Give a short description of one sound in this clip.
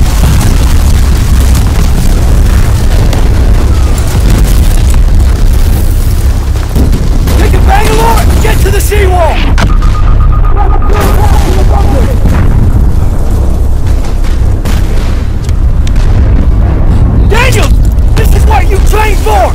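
Heavy battle rumbles with distant blasts.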